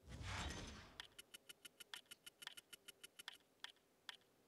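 A counter ticks rapidly with short electronic clicks.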